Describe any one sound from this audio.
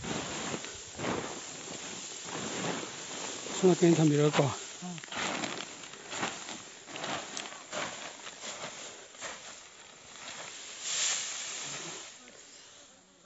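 Dry straw rustles and crackles as a bundle is carried.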